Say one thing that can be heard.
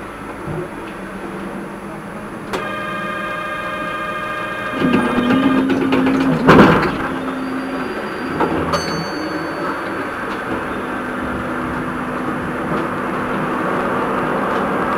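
A tram rolls slowly along the rails with a steady rumble.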